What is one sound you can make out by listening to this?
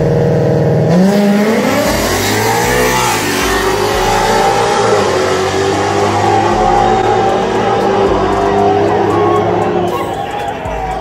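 Race car engines roar as the cars launch, rising sharply in pitch and fading into the distance.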